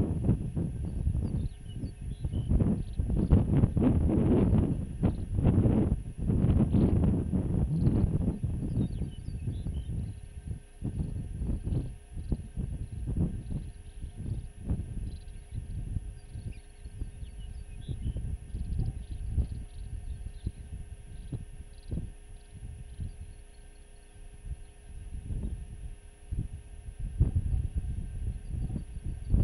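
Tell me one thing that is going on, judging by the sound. Strong wind gusts and rumbles across open snow.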